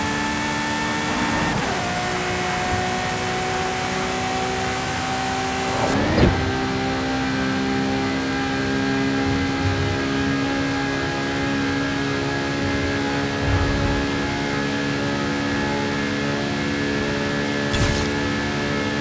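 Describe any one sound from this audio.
A race car engine roars at high speed, its pitch climbing through the gears.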